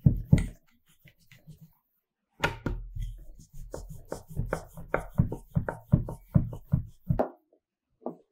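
A rolling pin rumbles and thumps over dough on a wooden board.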